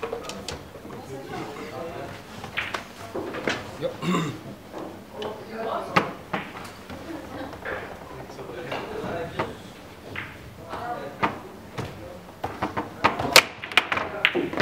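Foosball rods clatter and spin.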